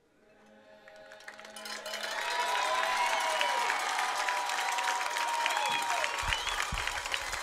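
A crowd of young people cheers and shouts outdoors, swelling louder.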